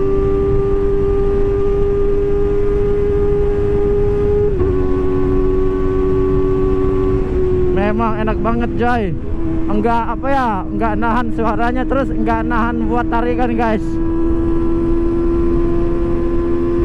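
A motorcycle engine drones steadily at speed.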